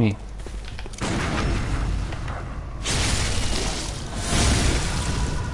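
A heavy blade slashes wetly into flesh.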